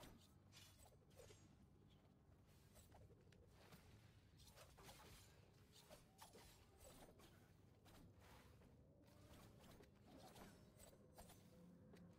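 Energy bolts whoosh through the air.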